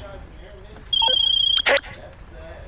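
A phone call tone beeps loudly.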